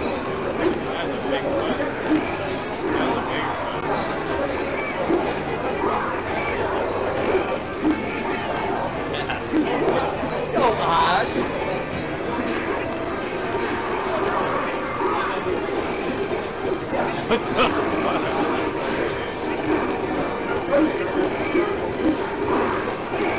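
Video game hits and effects pop and chime.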